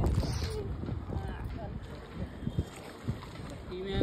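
Water splashes as a man wades in a river.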